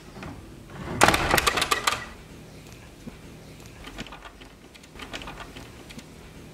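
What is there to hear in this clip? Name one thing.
A metal door latch rattles and clicks.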